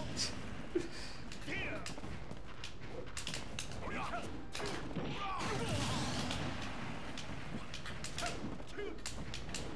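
Video game fighters clash with punches and hits.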